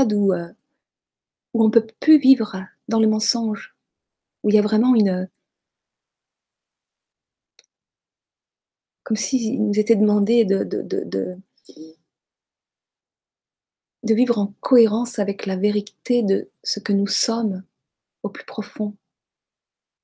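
A middle-aged woman speaks calmly through a microphone, close up, in short bursts with pauses.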